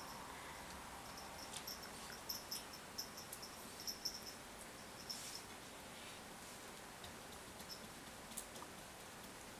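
A cat's paws patter and claws click softly on a wooden floor.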